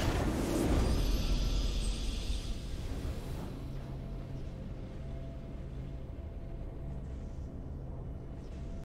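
A triumphant fanfare swells and rings out.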